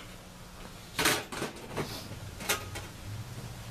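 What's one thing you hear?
A metal lid clanks and rattles against a metal can.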